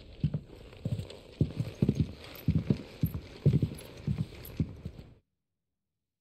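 Footsteps thud steadily on hollow wooden boards.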